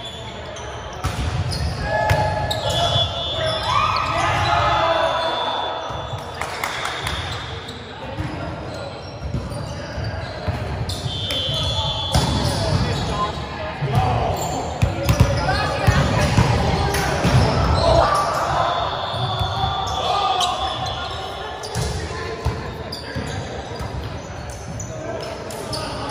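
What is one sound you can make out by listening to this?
A volleyball is struck by hands with sharp slaps.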